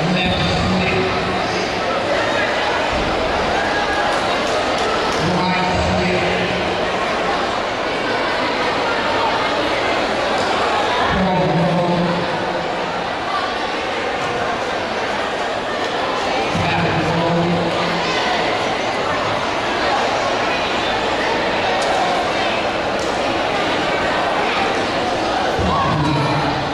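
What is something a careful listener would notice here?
Loud music with a steady beat plays through loudspeakers in a large echoing hall.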